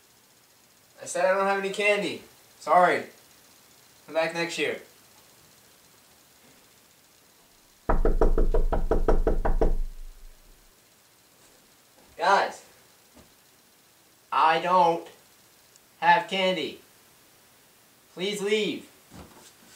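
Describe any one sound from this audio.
A young man talks loudly in short bursts nearby.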